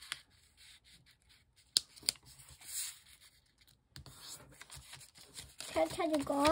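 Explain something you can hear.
Paper rustles and creases as it is folded by hand.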